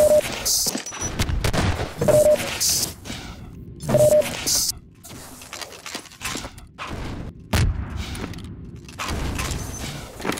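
Quick footsteps thud on a hard floor in an echoing corridor.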